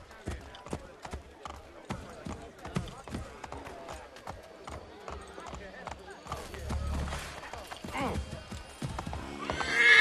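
Horse hooves clop quickly on cobblestones.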